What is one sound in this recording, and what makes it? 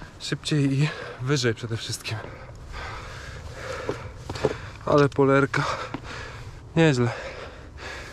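A young man talks close to the microphone.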